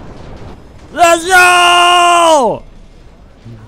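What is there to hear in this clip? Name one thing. A bright game jingle plays a short falling tune.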